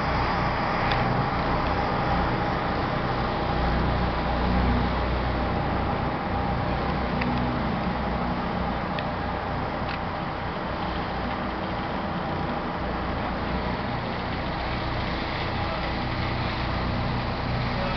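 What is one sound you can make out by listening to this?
A ferry engine rumbles steadily.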